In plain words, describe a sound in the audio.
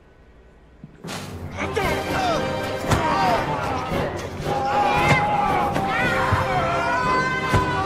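A crowd of men shouts and cheers loudly.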